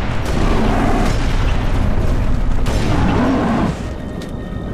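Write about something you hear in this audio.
A gun fires a loud blast with a heavy boom.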